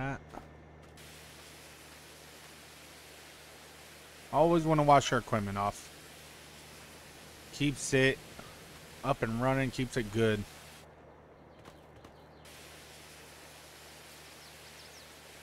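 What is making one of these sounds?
A pressure washer sprays water with a steady hiss.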